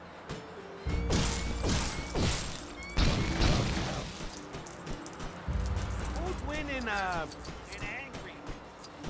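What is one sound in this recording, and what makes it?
Small coins jingle with bright chimes.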